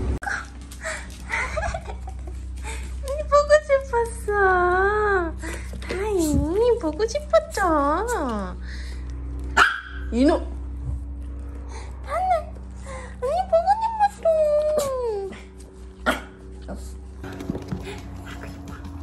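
A young woman talks to a dog in a high, sing-song voice.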